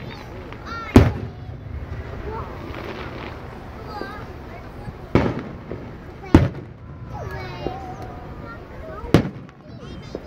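Fireworks boom loudly in the open air, with echoes.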